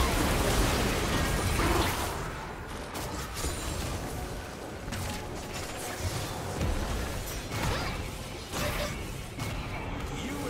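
Game spells crackle and burst in a hectic battle.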